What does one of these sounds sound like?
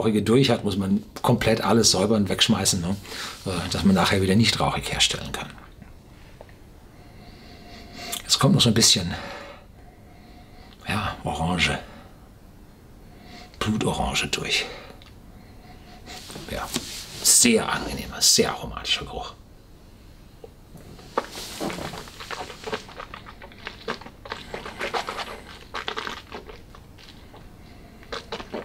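An older man speaks calmly and close up.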